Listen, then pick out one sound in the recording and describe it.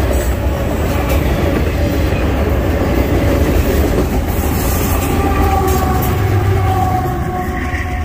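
Freight cars rumble and clatter past close by.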